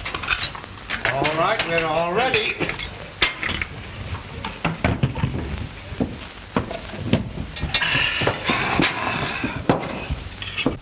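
A man talks loudly with animation.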